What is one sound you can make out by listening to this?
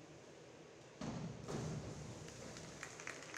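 A diver splashes into the water.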